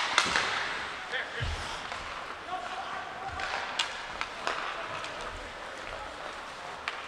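Skate blades scrape and hiss across ice in a large echoing arena.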